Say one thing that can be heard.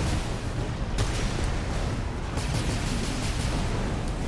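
Gunfire clatters in rapid bursts.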